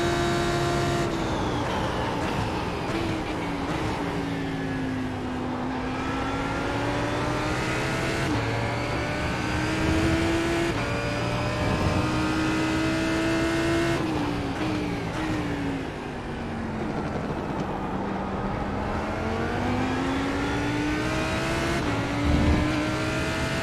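Other race car engines roar close by.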